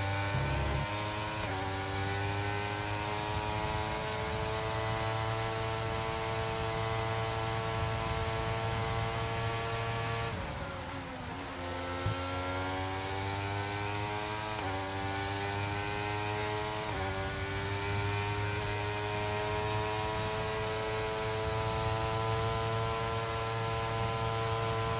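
A racing car engine screams at high revs, rising through the gears.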